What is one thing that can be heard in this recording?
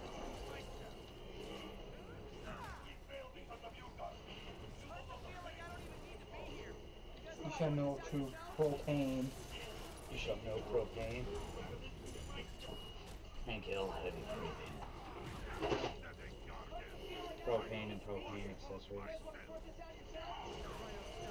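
Men's voices speak with dramatic tone in a game.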